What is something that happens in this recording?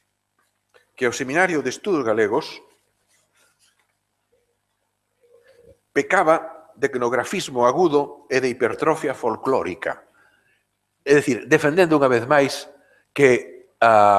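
An elderly man lectures calmly through a microphone.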